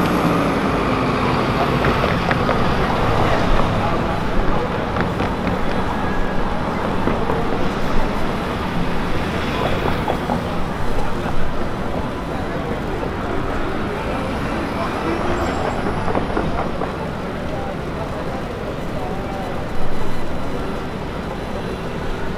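Traffic rumbles steadily through a busy city intersection.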